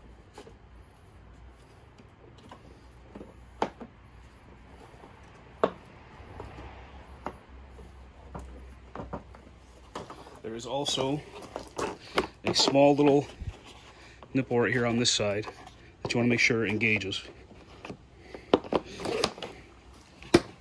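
Plastic parts knock and click against each other.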